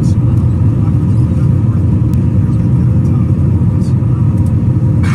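A jet engine roars steadily in flight.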